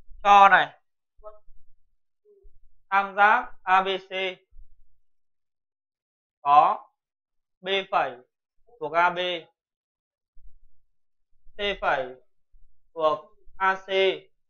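A man speaks calmly and clearly, close by, in short phrases.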